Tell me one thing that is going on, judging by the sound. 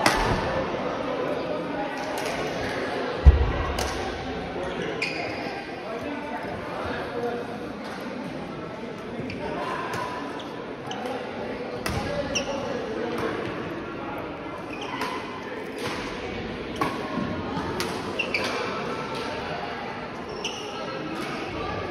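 Badminton rackets strike a shuttlecock in quick sharp pops.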